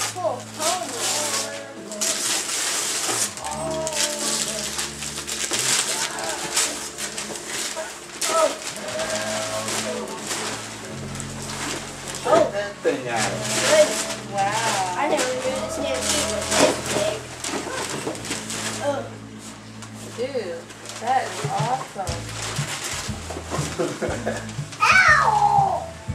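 Young children talk and exclaim excitedly nearby.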